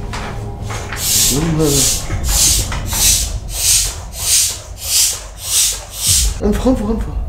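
A hand pump puffs air in quick, steady strokes.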